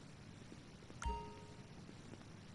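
A short electronic chime rings once.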